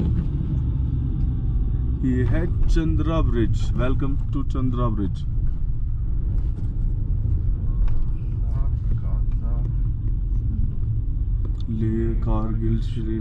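A car drives steadily along a road with a low rumble, heard from inside.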